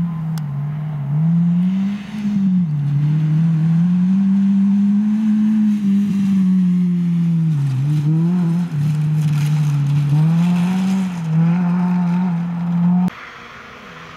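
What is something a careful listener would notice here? Gravel crunches and sprays under a rally car's tyres.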